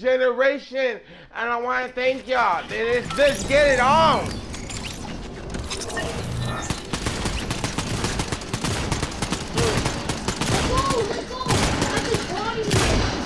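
A young man speaks loudly and excitedly into a microphone, close by.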